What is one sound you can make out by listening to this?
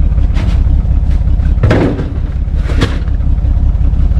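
A heavy tyre thumps down into the back of a car.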